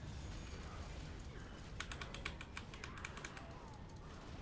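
Magic spells crackle and blast in a fight.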